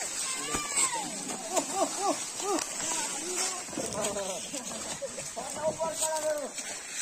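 Several men talk and call out loudly outdoors.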